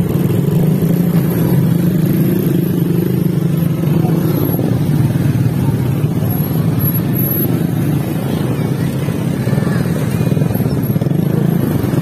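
Motorcycle engines idle and rumble close by.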